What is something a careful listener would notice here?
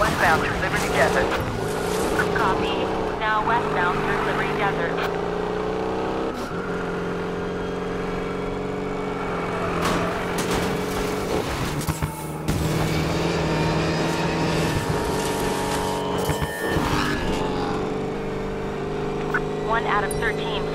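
Tyres skid and squeal on the road.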